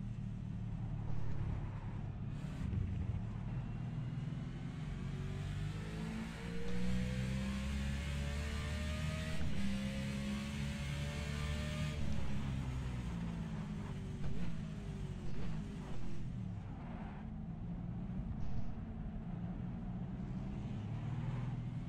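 A race car engine roars steadily, rising and falling in pitch as the car shifts gears.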